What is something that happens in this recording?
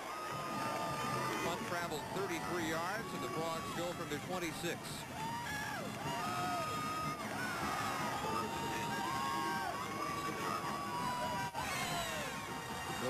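A crowd cheers and shouts in the open air.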